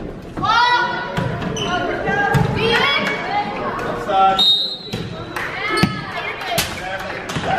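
A volleyball thumps off players' hands and arms during a rally.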